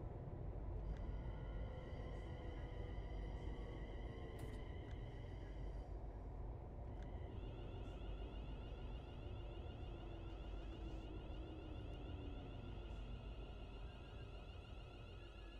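A train's motor whines steadily.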